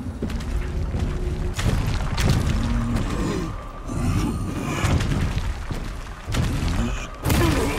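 A monster roars and growls loudly.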